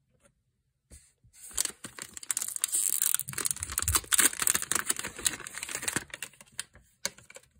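A plastic wrapper crinkles and tears loudly up close.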